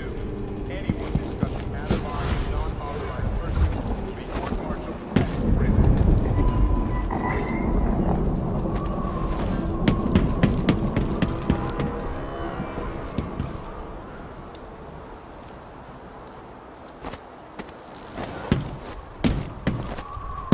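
Footsteps clatter across a metal roof.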